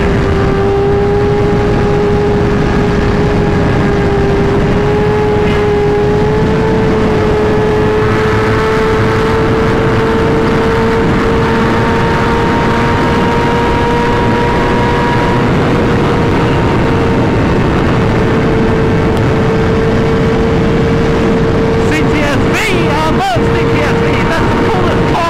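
A motorcycle engine hums steadily at high speed, its pitch rising slowly.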